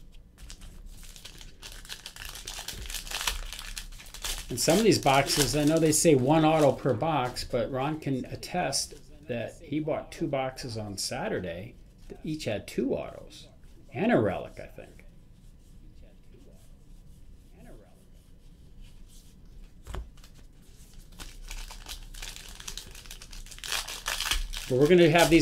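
A foil pack crinkles and tears as hands rip it open.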